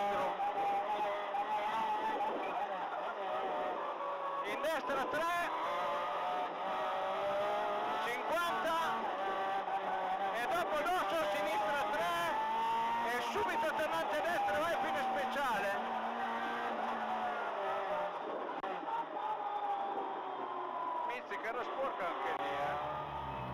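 A race car engine roars loudly from inside the cabin, revving up and down through gear changes.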